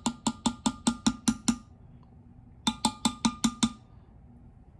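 A spatula taps rapidly against a glass bowl.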